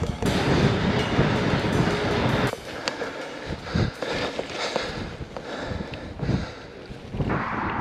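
Bicycle tyres roll over tarmac and grass.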